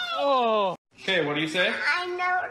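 A small child cries and whines close by.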